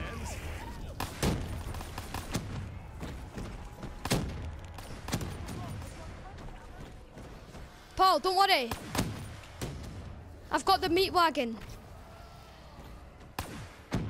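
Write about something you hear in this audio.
A gun fires sharp single shots.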